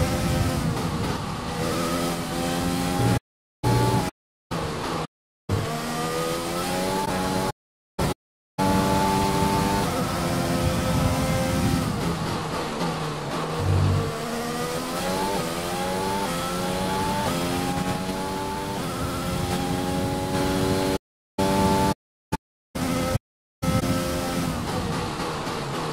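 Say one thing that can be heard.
A racing car engine screams, rising in pitch and dropping sharply with each gear change.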